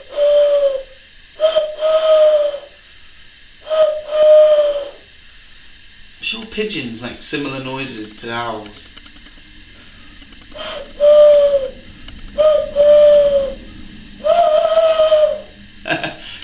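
A man blows a hooting call through his cupped hands, in short repeated notes.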